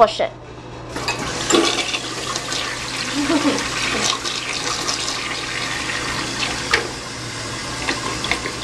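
A gravity-flush toilet flushes, with water rushing into the bowl.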